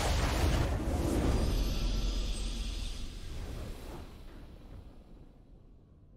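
A triumphant victory fanfare swells and slowly fades.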